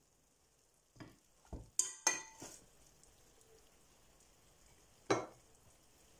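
A fork scrapes and taps against a metal pot.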